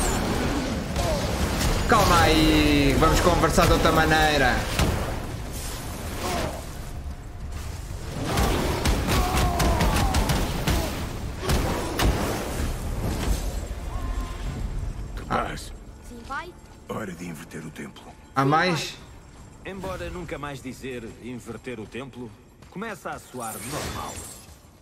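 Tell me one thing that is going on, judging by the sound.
Heavy blows and crashes ring out in a fight.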